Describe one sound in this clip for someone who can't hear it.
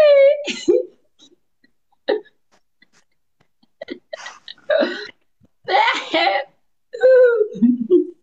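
A woman talks and laughs with animation over an online call.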